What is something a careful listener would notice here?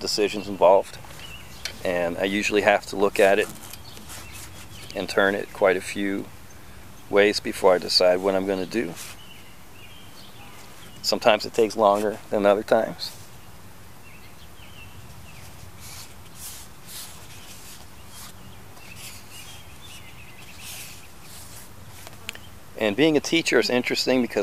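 A man talks calmly and close by, pausing now and then.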